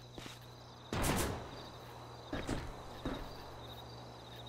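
A man scrambles and climbs onto a metal roof with a few heavy thuds.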